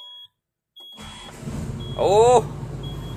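A diesel engine starts up and rumbles steadily.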